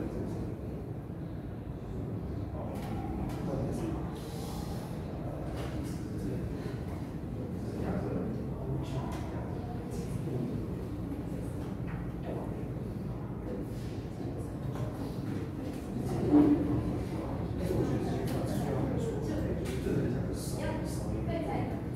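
A man lectures calmly, heard from across an echoing room.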